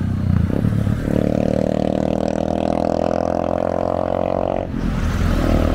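A motorbike engine hums as it passes close by.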